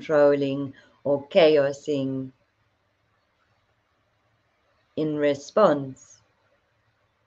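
A woman speaks calmly and slowly, close to the microphone.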